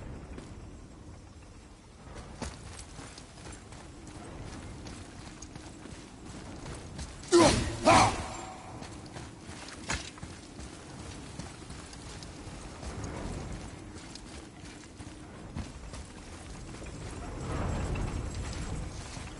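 Heavy footsteps fall on a stone floor.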